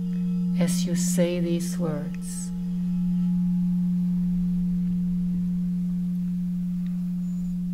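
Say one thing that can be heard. A crystal singing bowl hums with a steady, low ringing tone.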